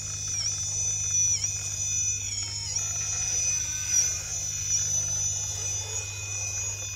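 Rubber tyres grind and scrape over rock.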